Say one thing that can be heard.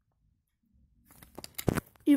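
Coins clink softly as fingers pick them up.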